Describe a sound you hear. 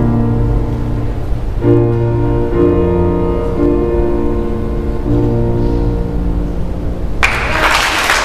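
A piano plays a slow, quiet passage.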